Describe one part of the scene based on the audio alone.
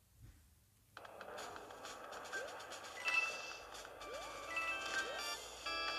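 Upbeat video game music plays.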